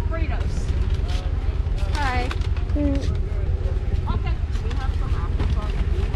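A young person talks nearby.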